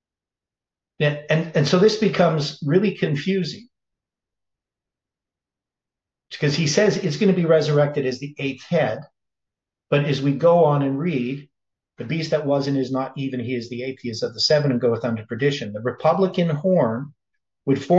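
An older man speaks calmly into a nearby microphone, with pauses.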